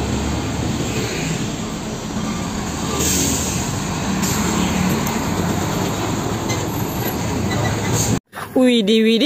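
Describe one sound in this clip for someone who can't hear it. A truck engine rumbles as heavy traffic passes close by.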